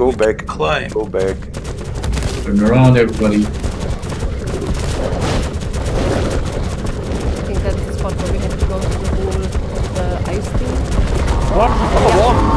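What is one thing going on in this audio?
A large creature's footsteps thud as it walks.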